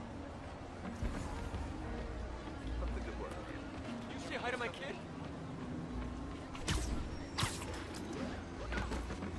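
Sharp whooshing thwacks ring out as a game character fights.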